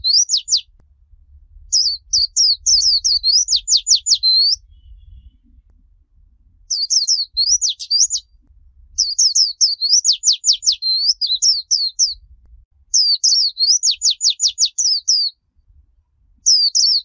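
A small bird sings loud, quick twittering phrases close by, in bursts with short pauses.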